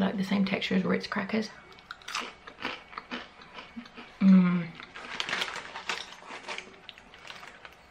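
A young woman crunches a crisp cracker.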